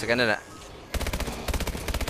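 Rapid gunshots fire in a quick burst.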